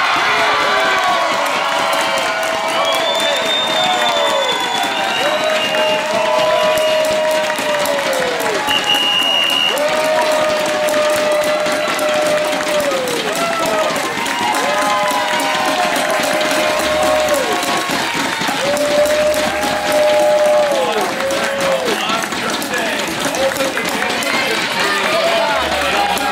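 A crowd of young men cheers and shouts excitedly outdoors.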